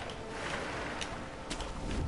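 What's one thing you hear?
Water splashes and rushes down a waterfall.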